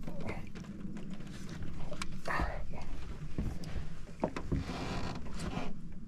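A fish thrashes on a fishing line.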